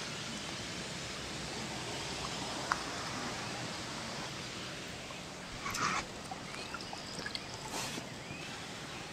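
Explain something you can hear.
Water splashes as a bucket is scooped and poured.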